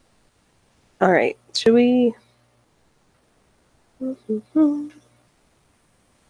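A young woman speaks briefly and calmly into a microphone close by.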